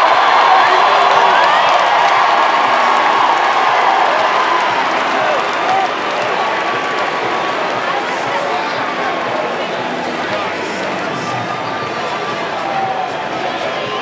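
People nearby shout and whoop.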